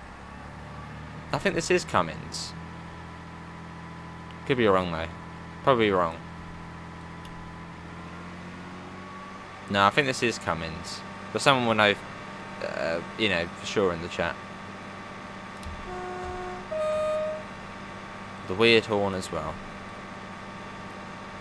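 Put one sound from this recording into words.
A train engine hums steadily.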